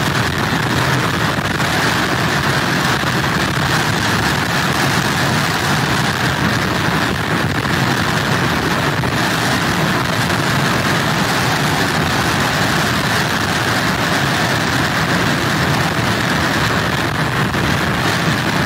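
Strong wind roars steadily outdoors.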